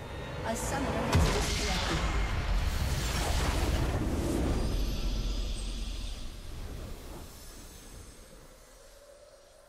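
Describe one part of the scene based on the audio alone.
A deep explosion booms and rumbles, then slowly fades.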